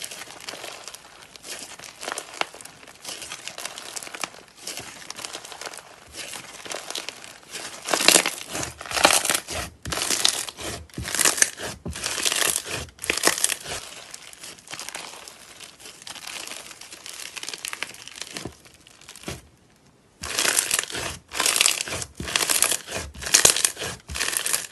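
Soft slime crackles and squishes as it is stretched and squeezed by hand, close up.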